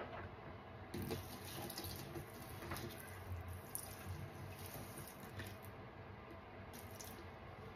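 Liquid pours in a thin stream onto wet sponges.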